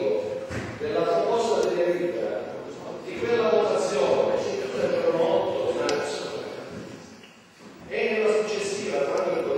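An elderly man speaks loudly and with animation in an echoing hall.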